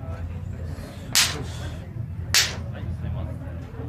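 Two young men slap their raised hands together.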